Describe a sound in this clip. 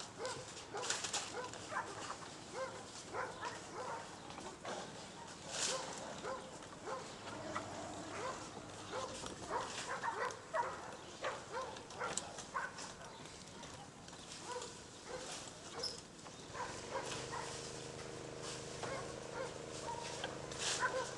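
Dogs bark and yip while playing outdoors.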